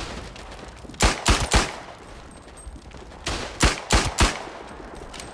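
A pistol fires several sharp shots in quick bursts.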